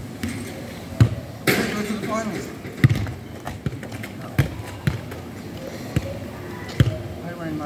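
A football is kicked with dull thuds on a hard court.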